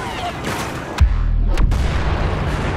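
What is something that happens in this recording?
An explosion booms with a deep rumble.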